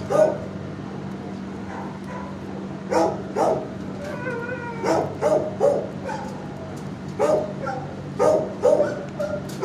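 Dogs bark loudly and sharply nearby.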